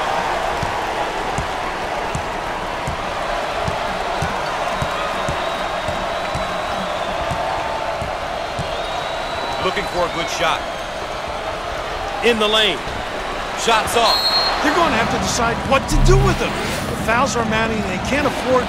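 A large crowd murmurs and cheers steadily in an echoing arena.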